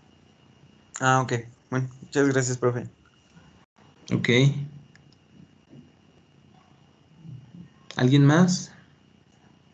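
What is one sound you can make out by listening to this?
A man speaks calmly in short bursts, heard through an online call.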